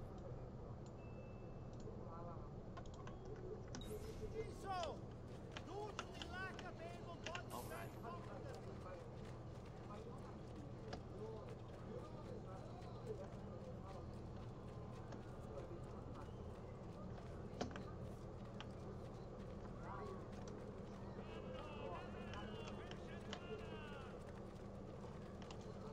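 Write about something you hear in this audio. Footsteps patter quickly on cobblestones.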